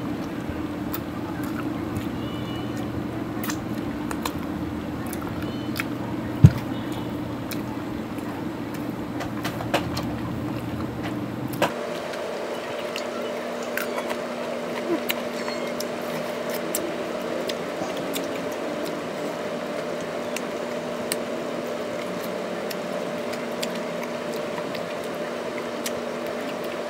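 A woman sucks and licks her fingers with wet smacking sounds.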